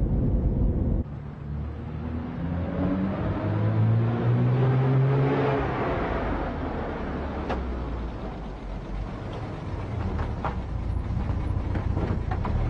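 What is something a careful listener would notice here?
A car drives up the street with its engine growing louder, then slows down.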